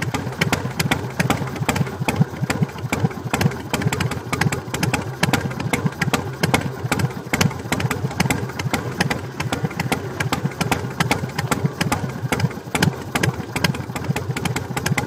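A Harley-Davidson Sportster V-twin engine idles with an uneven, loping beat.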